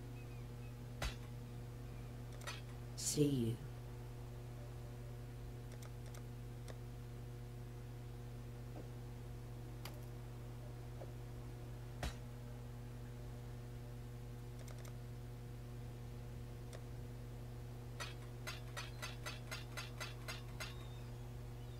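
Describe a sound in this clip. Short soft clicks sound as items are picked up and placed.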